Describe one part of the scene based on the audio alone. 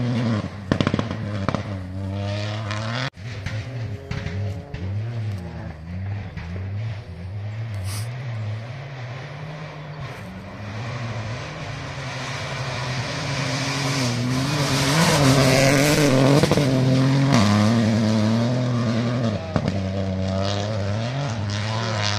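Gravel sprays from car tyres on a dirt track.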